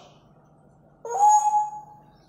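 A parrot whistles a short clear note.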